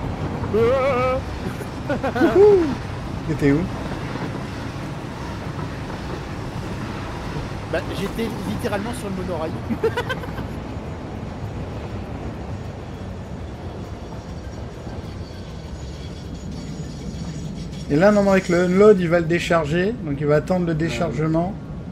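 A train rumbles steadily along its tracks.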